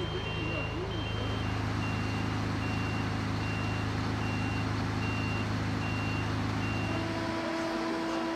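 A fire truck engine idles with a steady low rumble.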